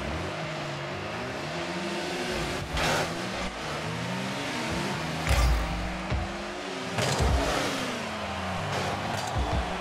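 A game car engine hums steadily, rising and falling in pitch.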